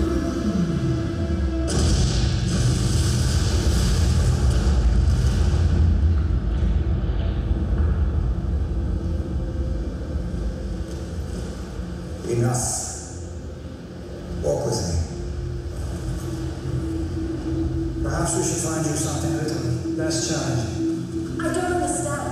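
Dramatic film music plays through loudspeakers in a large hall.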